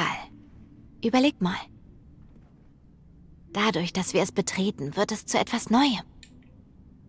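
Another young woman answers in a low, casual voice.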